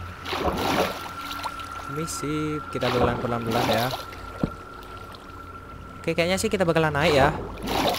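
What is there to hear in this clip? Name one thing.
Water splashes as a swimmer paddles through it.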